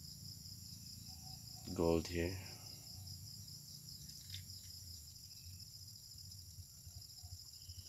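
Liquid pours gently into a glass funnel.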